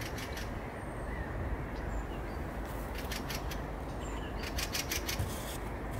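A leopard rubs and rolls against a cardboard box, which rustles and scrapes.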